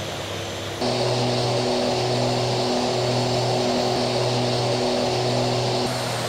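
A propeller hums with a steady pulsing drone.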